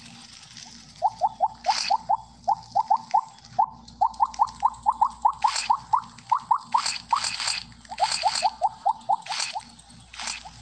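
Quick runs of little rising game blips pop one after another.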